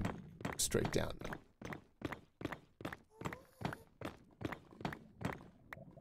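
A pickaxe taps quickly and repeatedly on stone.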